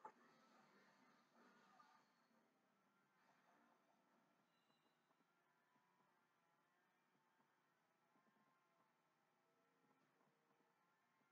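Video game music plays softly through a television speaker.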